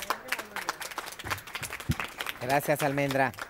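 A crowd claps and cheers in a large room.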